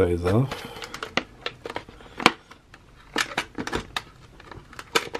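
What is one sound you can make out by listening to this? Plastic packaging crinkles and crackles as hands handle it.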